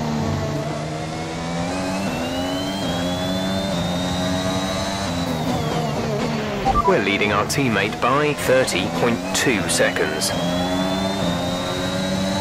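A racing car engine screams at high revs, climbing in pitch through quick gear changes, dropping as it slows, then revving up again.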